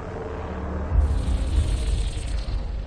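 A crackling energy wall roars loudly up close.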